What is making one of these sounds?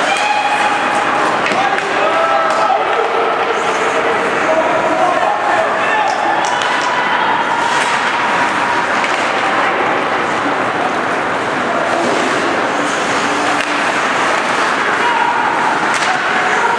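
Young men shout and call out across an echoing rink.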